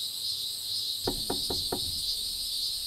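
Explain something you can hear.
A person knocks four times on a wooden door.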